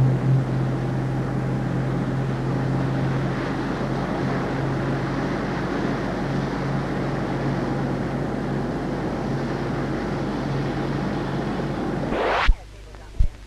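Water rushes and splashes against a speeding boat's hull.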